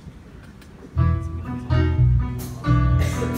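A choir begins to sing loudly.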